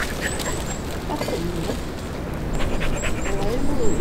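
A woman talks quietly outdoors nearby.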